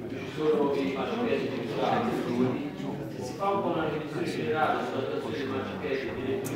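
A middle-aged man speaks with animation through a microphone in a reverberant hall.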